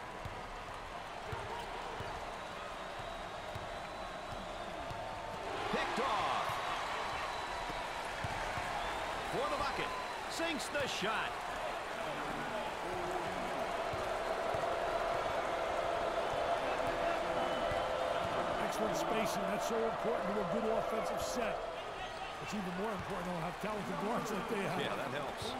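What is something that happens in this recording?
A large crowd cheers and murmurs steadily.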